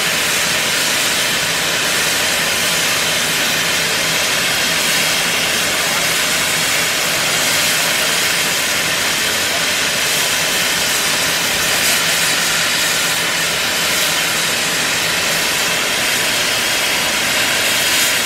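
A steam locomotive idles with a low steady rumble.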